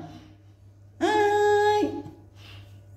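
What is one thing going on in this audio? A toddler squeals in a high voice.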